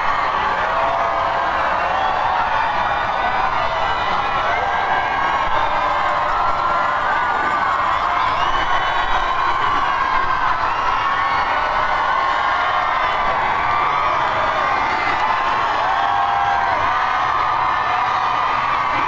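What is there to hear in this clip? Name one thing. A large crowd cheers and screams with excitement outdoors.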